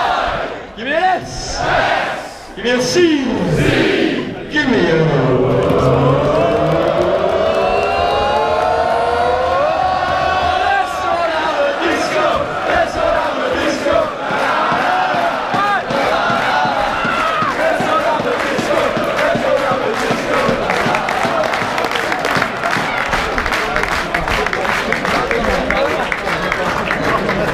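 A large outdoor crowd sings and cheers.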